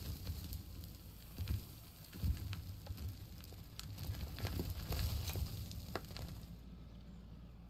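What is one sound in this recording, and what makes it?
A loader bucket scrapes and scoops loose dirt with rough crunching.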